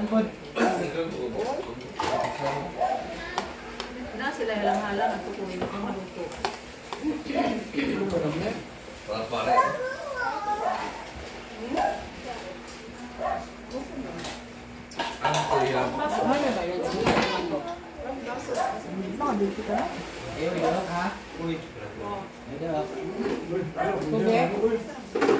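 Serving spoons clink against plates and dishes.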